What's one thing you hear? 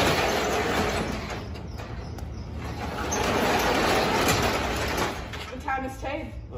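A metal roll-up door rattles as it slides.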